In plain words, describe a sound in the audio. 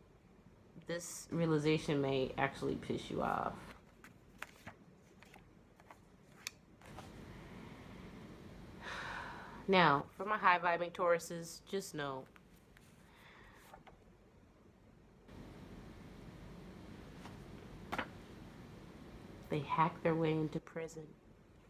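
A young woman speaks softly and close by, in short bursts with pauses.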